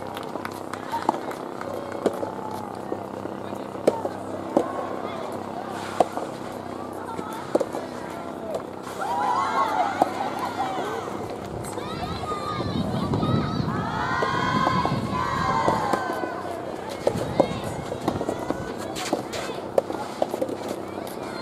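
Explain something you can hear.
Rackets strike a ball with sharp pops outdoors.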